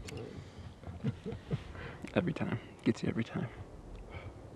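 A young man talks calmly and close by, outdoors.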